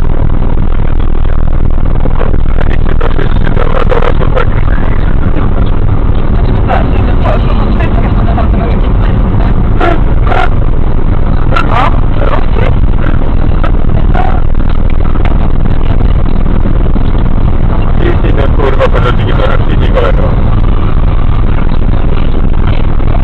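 A car drives fast along a highway with a loud, steady roar of engine and tyres.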